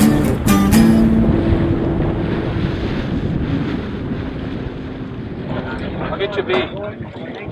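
Wind rumbles over open water.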